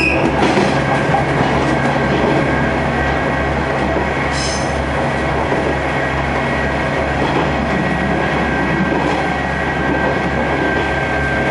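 A subway train rumbles and rattles loudly along the tracks.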